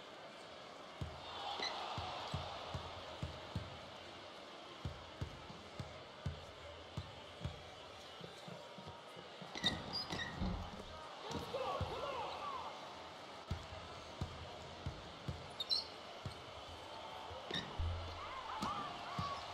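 A basketball bounces on a hardwood court in a steady dribble.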